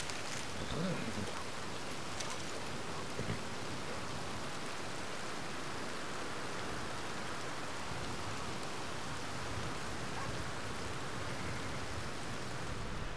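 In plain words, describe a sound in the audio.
Wind blows steadily through grass and trees outdoors.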